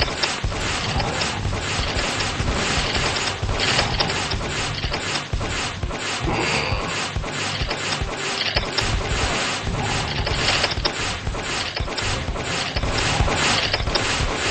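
Rapid blaster shots fire in quick bursts.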